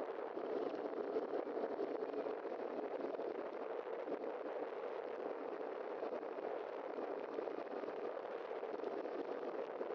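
Tyres roll over smooth pavement.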